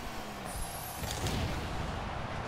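A loud blast booms as a car is smashed.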